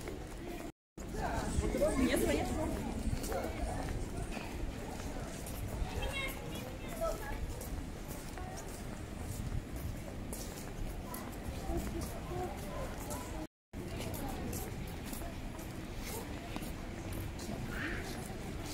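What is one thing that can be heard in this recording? People chatter at a distance outdoors.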